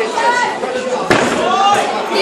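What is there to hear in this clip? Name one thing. A kick thuds against a body.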